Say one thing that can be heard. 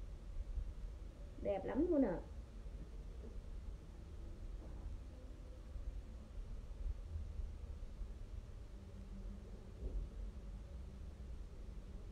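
Fabric rustles as a dress is handled.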